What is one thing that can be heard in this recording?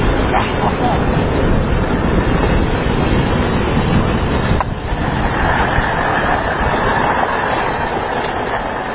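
Strong wind rushes and buffets steadily outdoors.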